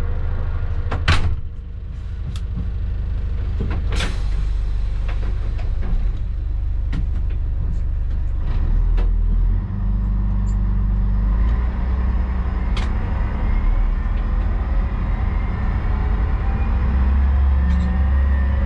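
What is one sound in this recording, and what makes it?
Train wheels clatter and knock over rail joints.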